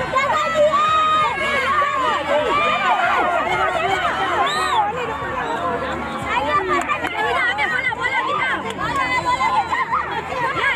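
Young children shout and cheer excitedly outdoors.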